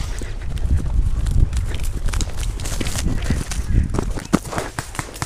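Footsteps crunch on grass.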